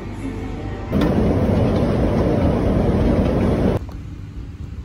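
An escalator rumbles and clatters steadily underfoot.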